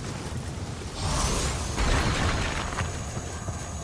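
A sword strike bursts with crackling magic.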